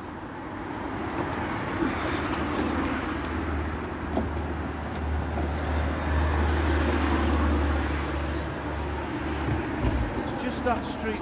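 Traffic rumbles past on a nearby road.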